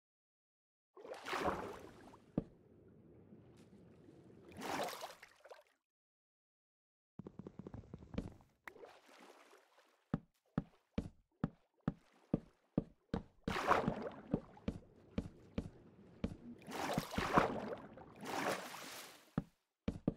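Water splashes and gurgles as a swimmer dives under.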